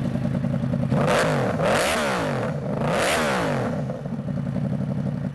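A motorcycle engine revs up sharply twice and drops back.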